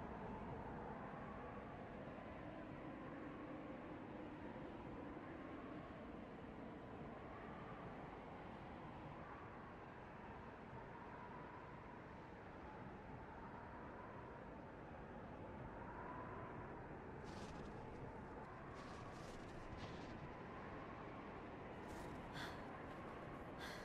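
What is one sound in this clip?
A strong wind howls and whistles steadily.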